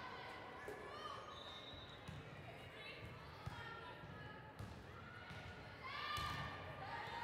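Players' shoes squeak sharply on the hard floor.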